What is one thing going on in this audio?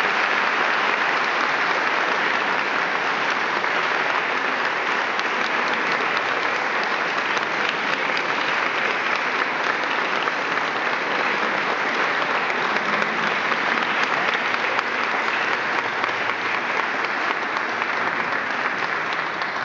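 A large audience applauds steadily in an echoing hall.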